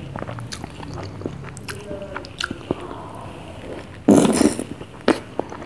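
A person eats noisily, slurping and smacking lips up close.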